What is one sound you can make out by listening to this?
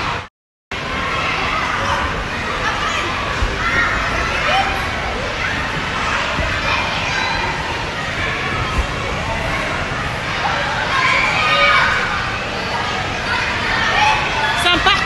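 Children shout and shriek nearby in a noisy, echoing hall.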